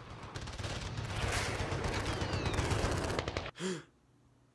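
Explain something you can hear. A young man snores loudly close by.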